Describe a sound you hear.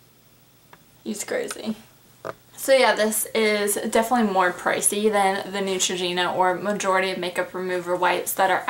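A young woman talks animatedly, close by.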